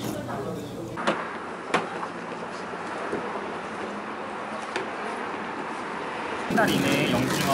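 A man scrubs a soapy car with a brush.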